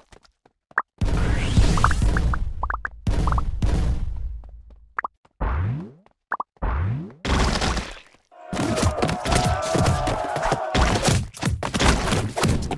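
Heavy thumps and crunches sound in a busy burst.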